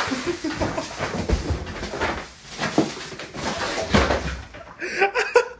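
A dog drags a rolled mat across a wooden floor with a scraping rustle.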